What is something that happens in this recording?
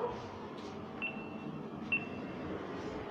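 An elevator button beeps twice.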